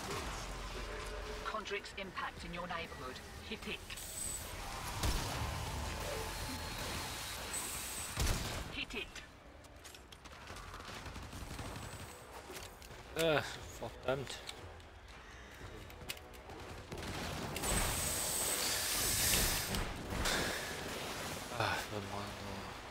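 Game weapons clash and slash in combat.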